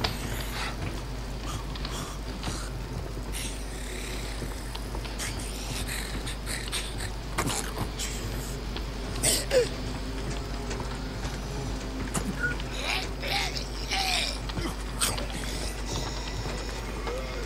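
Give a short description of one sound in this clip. Footsteps crunch on a gritty rooftop.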